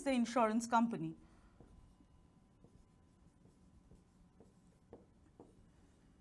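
A marker scratches and taps softly on a board.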